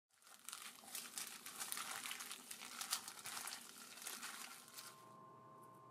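Gloved hands squish and rustle through shredded food in a bowl.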